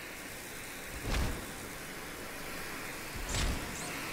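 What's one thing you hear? A heavy blow thuds against a body.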